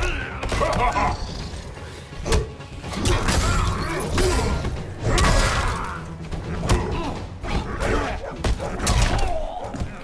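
Blades slash and clang.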